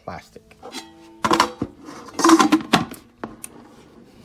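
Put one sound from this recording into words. A basket slides into an appliance with a plastic clunk.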